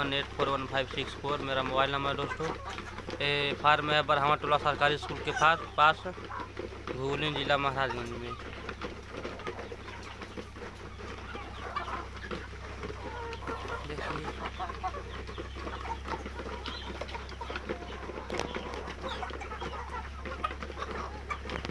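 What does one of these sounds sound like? Many chickens cluck and squawk close by.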